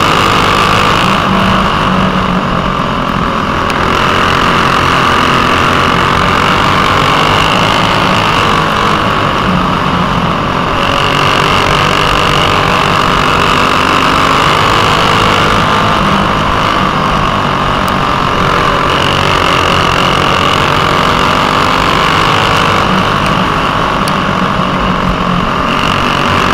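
A kart engine buzzes loudly up close, rising and falling in pitch as it speeds up and slows for corners.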